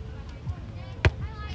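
A volleyball is smacked by a hand on a serve.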